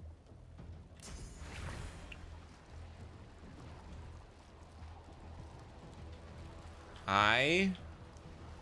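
A magic spell whooshes and rings out in a game.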